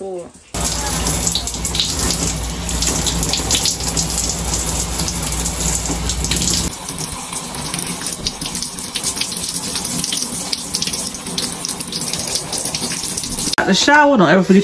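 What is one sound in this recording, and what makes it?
Shower water sprays and splashes steadily.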